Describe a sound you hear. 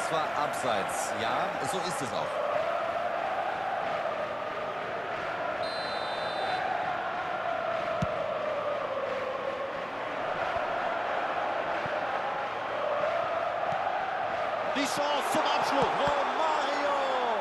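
A large crowd chants and roars steadily in a stadium.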